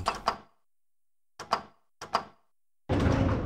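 An elevator button clicks several times.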